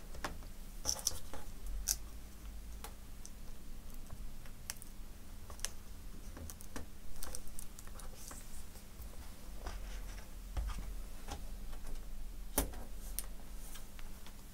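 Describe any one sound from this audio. Plastic parts click and tap as a laptop is taken apart by hand.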